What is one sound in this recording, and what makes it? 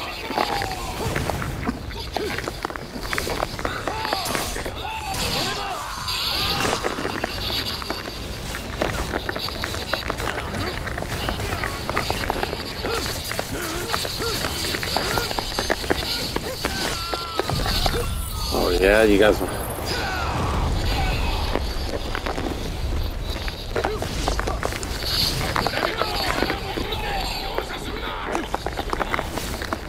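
Swords slash and clang in rapid strikes.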